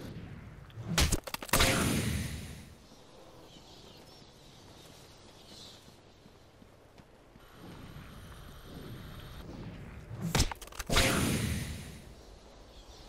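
A pod is smashed open with a loud, wet crunch.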